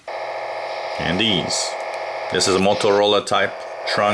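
A man speaks through a small, crackly radio speaker.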